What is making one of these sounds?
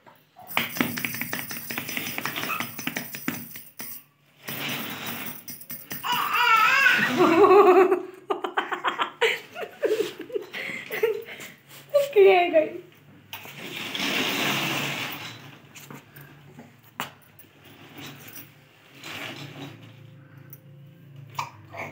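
A baby walker's plastic wheels rattle on a hard floor.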